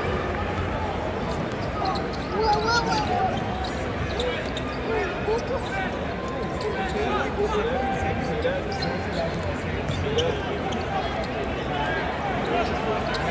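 A large indoor crowd murmurs and chatters in a big echoing arena.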